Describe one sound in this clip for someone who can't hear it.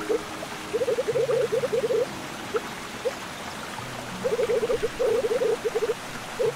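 Short electronic blips chatter rapidly in bursts.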